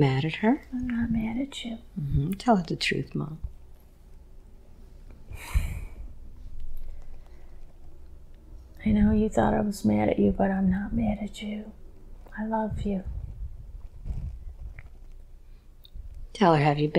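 A middle-aged woman speaks softly and haltingly into a close microphone.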